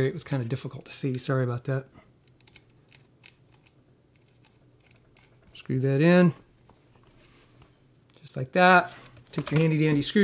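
Small plastic parts click and tap as hands fit them together.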